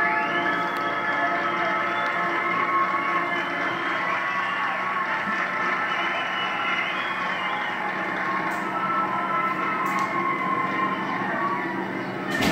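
A high school marching band plays a brass-heavy tune in a large open stadium.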